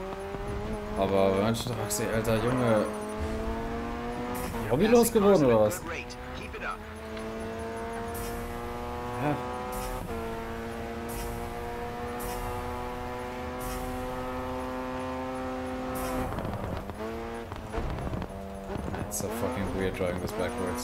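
A racing car engine whines loudly, its pitch climbing as it speeds up and dropping on braking.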